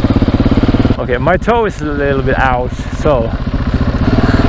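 A single-cylinder supermoto engine revs up and down through the gears.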